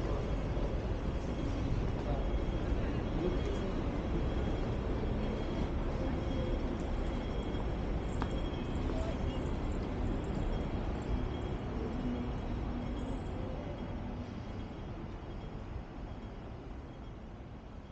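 Street traffic hums steadily outdoors and slowly fades.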